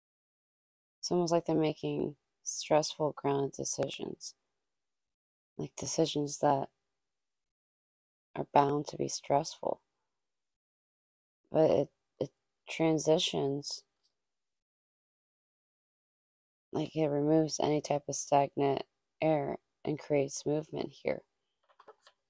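A young woman speaks calmly and closely into a microphone, in short bursts with pauses.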